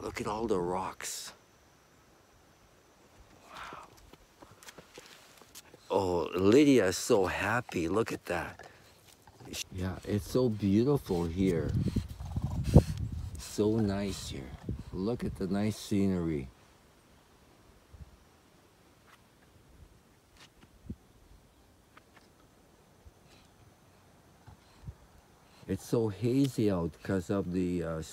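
An elderly man talks calmly, close by.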